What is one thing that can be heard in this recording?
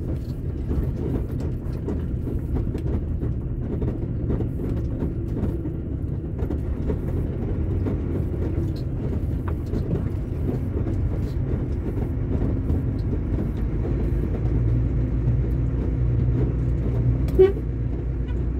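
A car engine hums as a car drives closer over a dirt road and passes close by.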